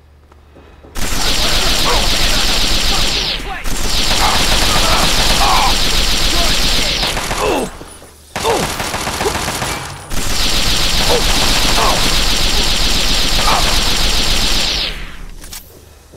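A weapon fires in long, loud crackling bursts.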